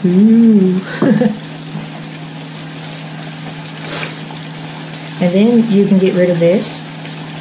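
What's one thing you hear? Hands rub and squeeze a coating of flour in a metal bowl.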